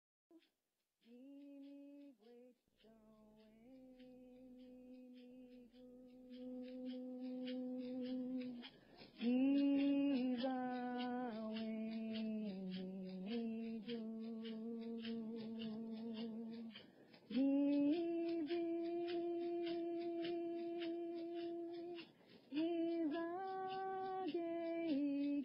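A group of young people sings together in long, held notes.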